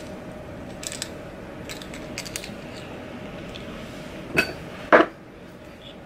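Small metal parts click and jingle in a woman's hands.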